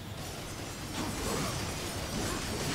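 A fiery blast roars.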